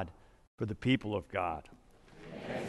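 A man speaks calmly through a microphone in a large echoing room.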